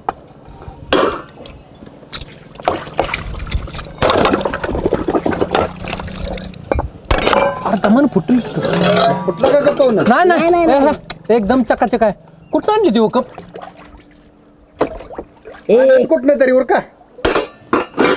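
Metal dishes clink and clatter.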